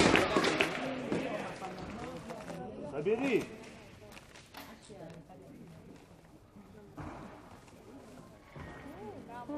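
Spectators talk and murmur nearby in a large echoing hall.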